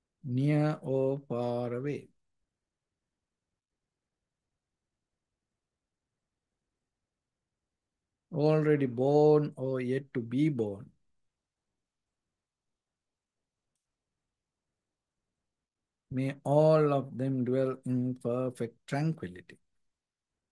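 A man chants slowly and calmly in a deep voice, close to a microphone, with long pauses.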